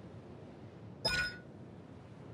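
A soft menu chime rings out as a selection changes.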